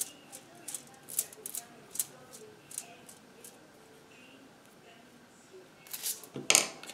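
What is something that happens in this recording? A paintbrush dabs and swishes on paper.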